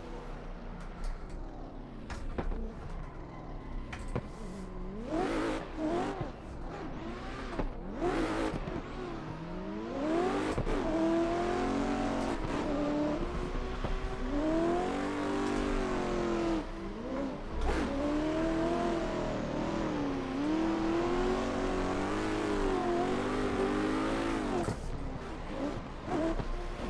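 A car engine revs and whines up and down as it drifts.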